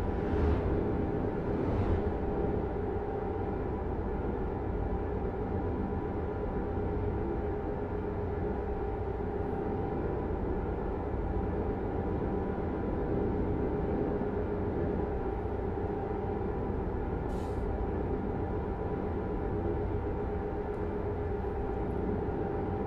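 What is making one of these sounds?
A truck engine hums steadily while driving.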